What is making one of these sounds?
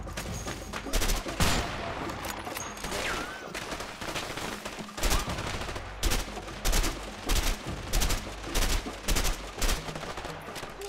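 Rifle shots crack repeatedly, one after another.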